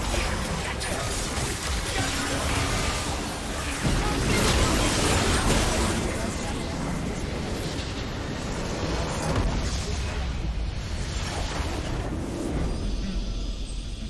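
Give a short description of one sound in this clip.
Video game battle effects clash and burst in a dense fight.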